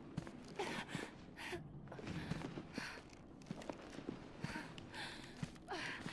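Heavy footsteps thud slowly on a hard floor.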